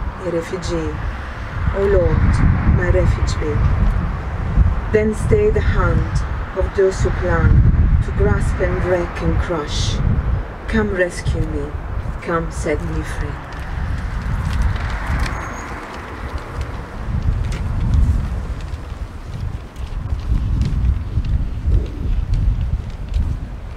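Wind rumbles against a microphone.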